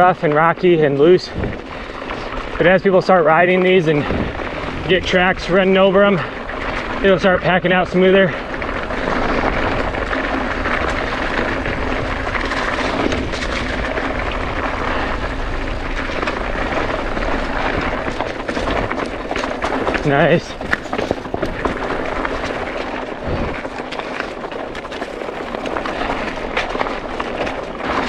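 Bicycle tyres roll and crunch over a dirt and gravel trail.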